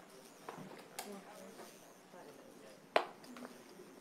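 Poker chips click against each other on a table.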